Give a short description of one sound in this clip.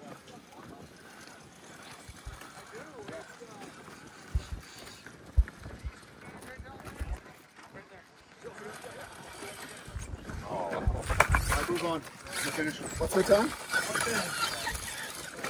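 A toy crawler's small electric motor whines as it climbs.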